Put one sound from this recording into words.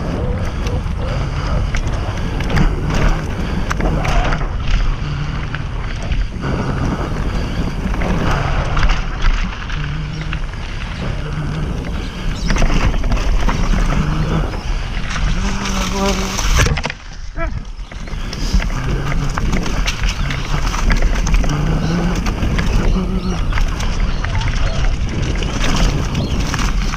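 Wind rushes and buffets past a fast-moving mountain bike rider.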